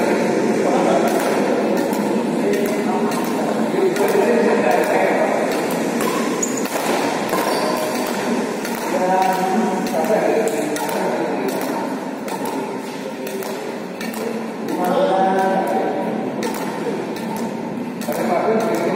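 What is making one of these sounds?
Men talk and call out across the echoing hall.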